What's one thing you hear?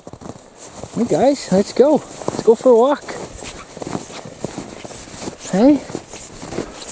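A dog barks and yelps excitedly.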